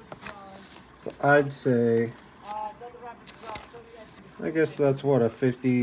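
A card slides into a plastic sleeve with a soft rustle.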